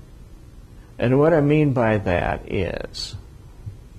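An elderly man speaks calmly into a clip-on microphone.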